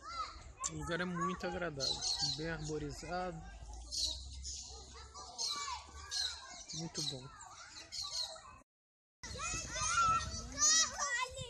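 Children shout and chatter outdoors.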